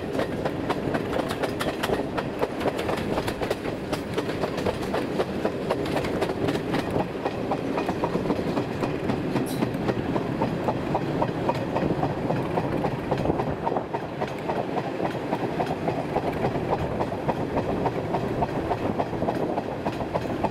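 Train carriages rumble and rattle steadily along the track.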